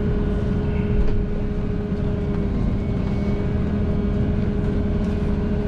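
An engine hums steadily from inside a moving vehicle.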